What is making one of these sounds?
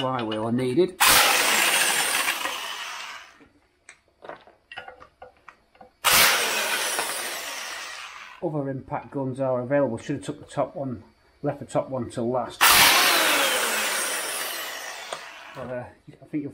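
An impact wrench rattles loudly in short bursts.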